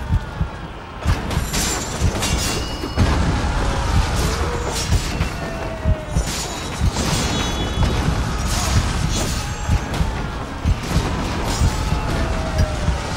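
Swords clash and strike in quick, sharp blows.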